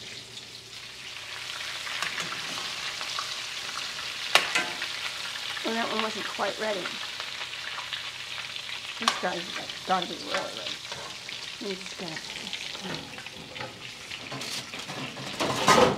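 Food sizzles loudly in hot oil in a frying pan.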